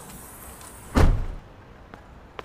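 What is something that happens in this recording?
A car door slams shut with a heavy thud.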